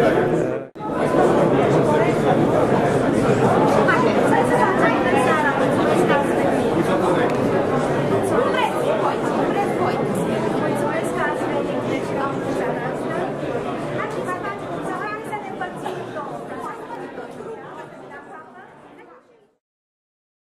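A crowd chatters in an echoing hall and slowly fades.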